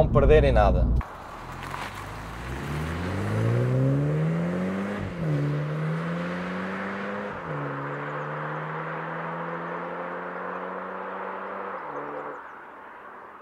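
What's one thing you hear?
A car engine revs hard and rises in pitch as the car accelerates away, shifting gears.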